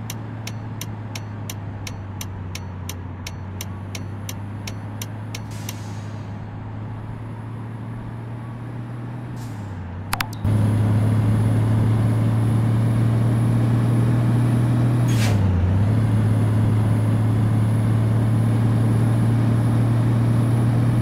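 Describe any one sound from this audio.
A truck engine hums steadily, growing louder partway through.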